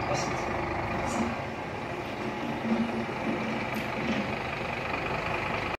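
A truck's diesel engine idles steadily nearby.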